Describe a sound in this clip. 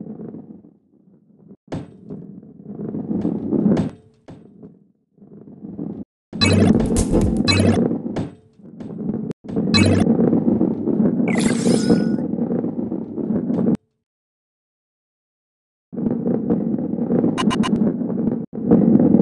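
A ball rolls and rumbles along a wooden track.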